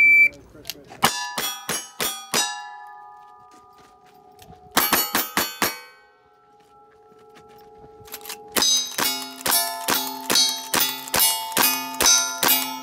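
Gunshots fire in quick bursts outdoors.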